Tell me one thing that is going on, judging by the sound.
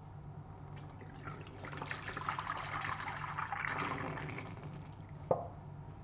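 Milk pours from a carton and splashes into a sink.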